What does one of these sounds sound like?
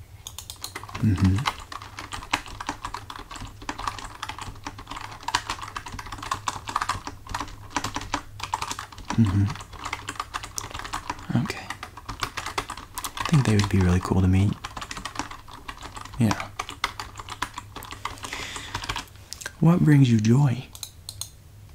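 A young man speaks softly, close to a microphone.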